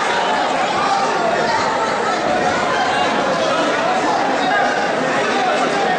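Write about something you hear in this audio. A crowd of men and women chatter and call out in a large echoing hall.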